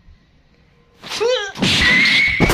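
A person cries out while being lifted upside down.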